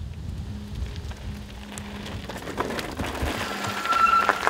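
Bicycle tyres crunch over gravel.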